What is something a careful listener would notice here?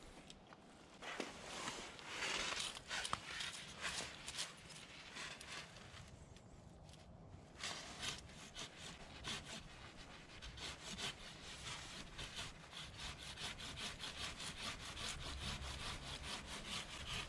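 A hand saw rasps back and forth through a branch.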